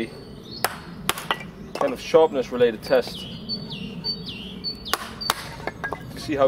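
A knife is struck through wood with sharp knocks.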